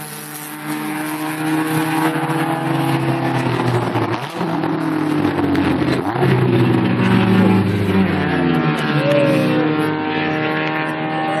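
Car engines rev high and race away into the distance.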